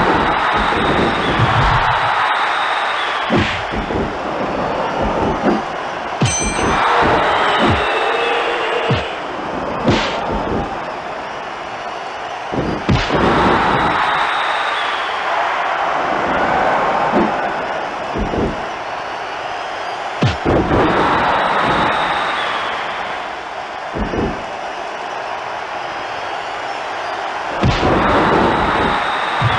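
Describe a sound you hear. A crowd cheers and roars throughout.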